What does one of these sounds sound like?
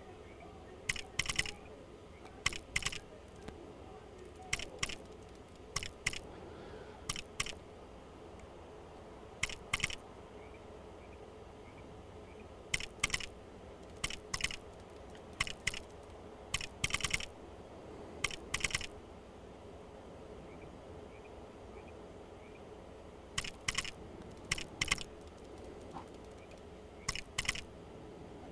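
Menu selection clicks tick in quick pairs as items are scrolled through.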